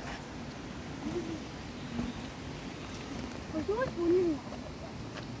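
A young girl calls out briefly outdoors.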